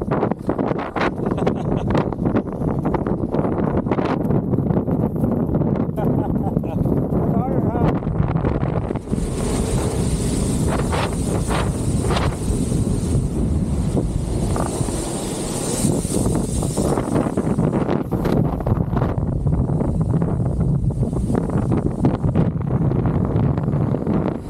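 Strong wind buffets a microphone outdoors.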